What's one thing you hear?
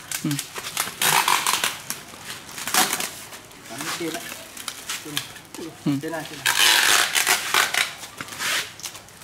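Packing tape screeches as it is pulled off the roll.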